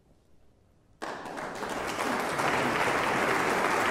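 An audience bursts into loud applause.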